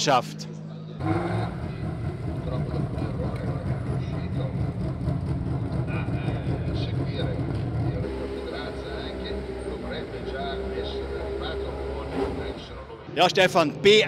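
A racing car engine rumbles steadily at idle.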